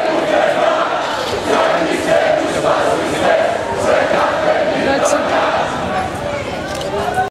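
A large crowd chants loudly in unison outdoors.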